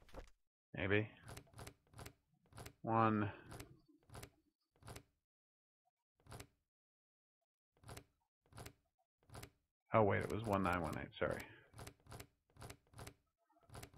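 A combination lock's dial clicks as it turns.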